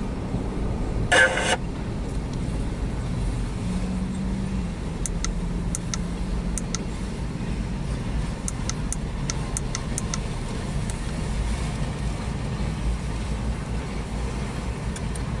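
A railway crossing bell rings repeatedly.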